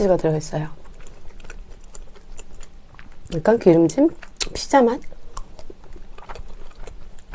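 A young woman chews food wetly close to a microphone.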